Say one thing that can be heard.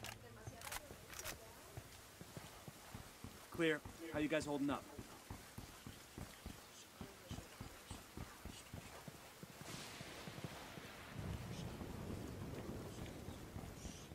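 Footsteps tread on hard paving.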